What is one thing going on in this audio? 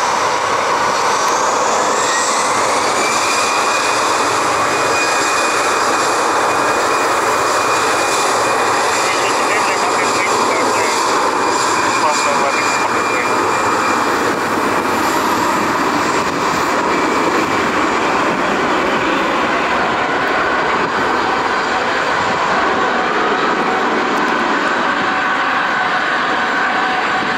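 A jet engine roars loudly and steadily as an airliner rolls along a runway.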